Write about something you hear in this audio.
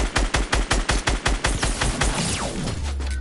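A gun fires rapid shots in quick succession.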